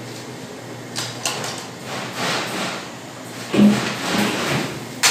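A metal pot clanks and scrapes against a hard floor.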